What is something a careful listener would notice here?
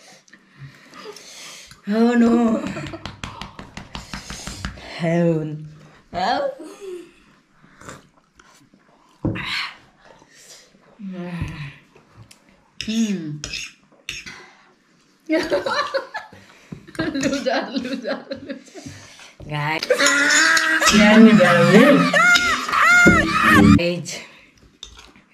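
A middle-aged woman talks and laughs close by.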